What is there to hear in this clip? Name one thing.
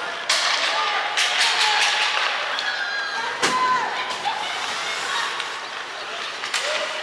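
Skates scrape and carve across ice in a large echoing arena.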